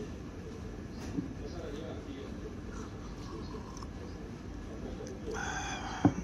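A ceramic cup knocks lightly on a wooden table.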